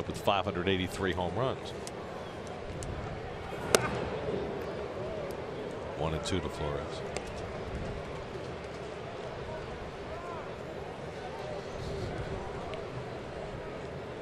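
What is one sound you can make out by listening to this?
A crowd murmurs steadily in an open ballpark.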